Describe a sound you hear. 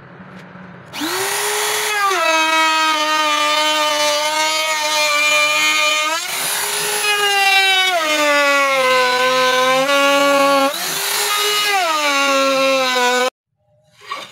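A small electric router whines loudly as it cuts into wood, its pitch dropping and rising with the load.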